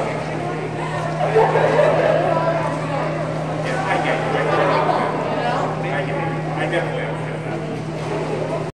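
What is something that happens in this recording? A crowd of men and women chatter in a large echoing hall.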